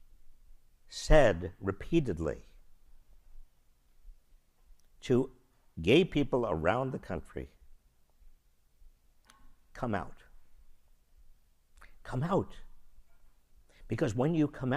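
An elderly man speaks with animation into a microphone, in pauses.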